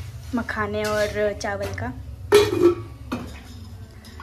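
A metal spoon scrapes and clinks in a steel pot.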